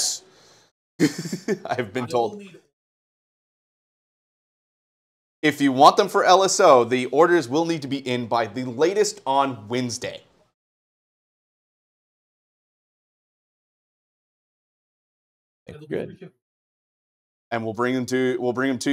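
A man talks with animation through a microphone, in short bursts.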